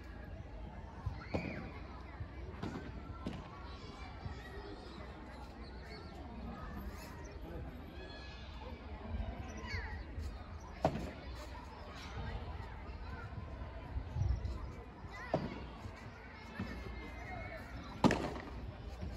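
Padel rackets hit a ball back and forth with sharp pops.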